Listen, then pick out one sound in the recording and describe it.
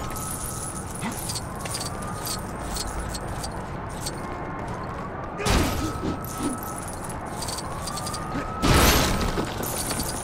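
Small pieces clatter and tinkle as they are scattered.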